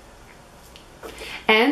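A young woman speaks calmly close by.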